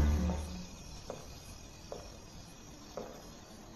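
Footsteps echo slowly on a hard floor.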